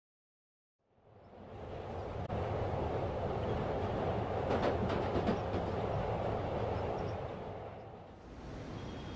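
A subway train rumbles and rattles along its tracks.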